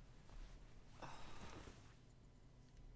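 A young woman talks quietly into a microphone.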